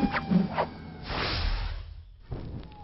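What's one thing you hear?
Flames whoosh and roar.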